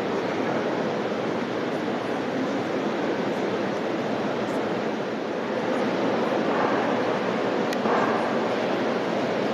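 A crowd of young people sings together in a large echoing hall.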